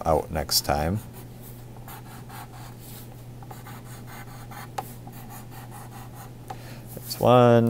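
A pencil scratches across paper in quick strokes.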